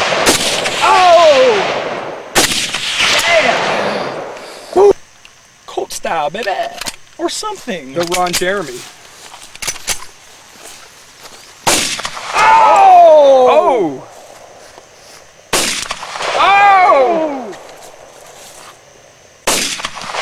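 Pistol shots crack loudly outdoors, each one echoing off the hills.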